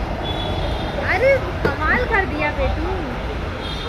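Children shout and squeal excitedly nearby.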